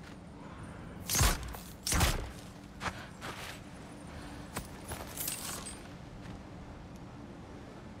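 A bow creaks as an arrow is drawn and loosed.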